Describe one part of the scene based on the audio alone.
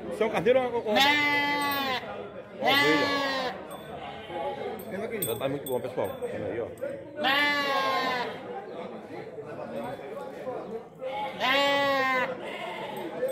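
Goats bleat loudly nearby.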